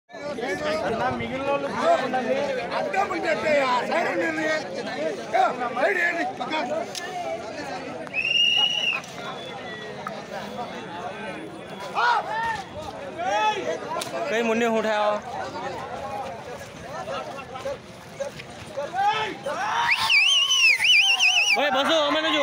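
A large outdoor crowd of men shouts and chatters excitedly.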